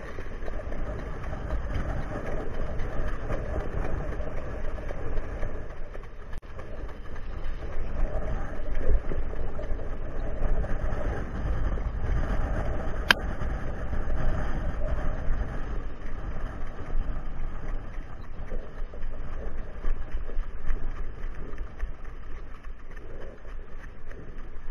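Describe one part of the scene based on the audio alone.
A horse's hooves pound rhythmically on a dirt track.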